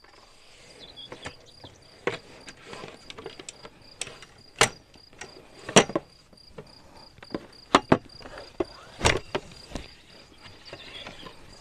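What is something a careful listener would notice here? A folding metal table clanks and knocks as it is unfolded and set up.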